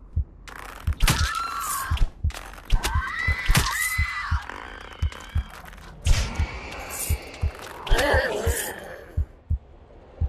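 Creatures shriek as arrows strike them.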